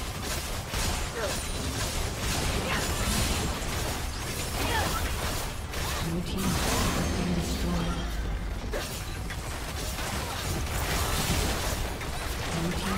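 Spell effects whoosh and crackle in a busy fight.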